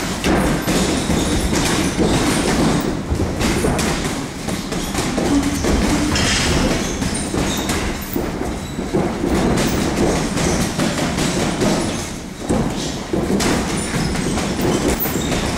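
Gloves smack against punch mitts in quick bursts.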